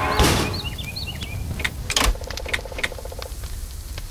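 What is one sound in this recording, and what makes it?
Soft clicks sound as menu options are chosen.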